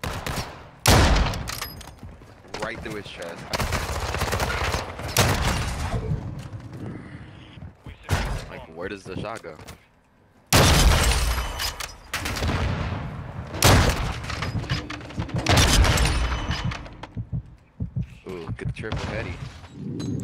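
A sniper rifle fires with a loud, sharp crack.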